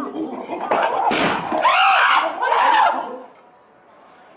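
A chimpanzee screams loudly.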